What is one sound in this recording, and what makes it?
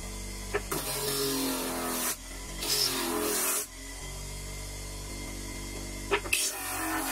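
A small sanding drum motor hums steadily.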